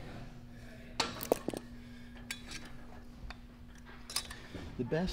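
Gym machine weights clank.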